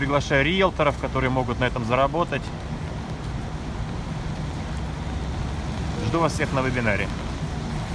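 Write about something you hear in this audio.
Rain patters softly on umbrellas.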